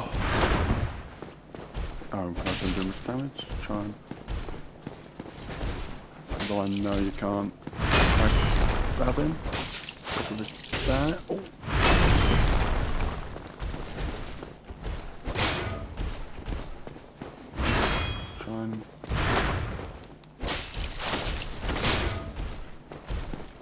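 A sword clangs loudly against a metal shield.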